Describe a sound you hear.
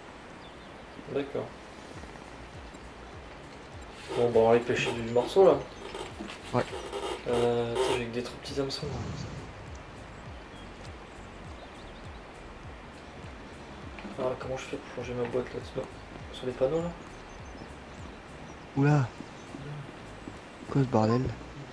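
A young man talks casually into a close microphone, in short bursts.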